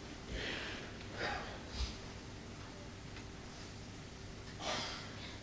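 A male choir sings softly in a hall.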